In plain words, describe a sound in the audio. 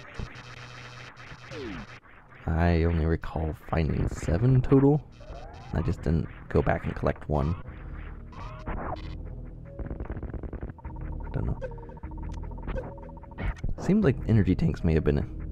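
Chiptune game sound effects beep and zap.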